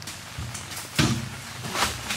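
Dry leaves rustle and crunch as a man gathers them.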